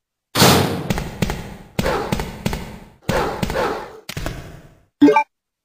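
Footsteps thud and echo on a hard floor.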